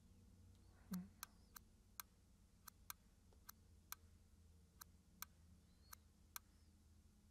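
Short clicks sound as a finger taps a touchscreen.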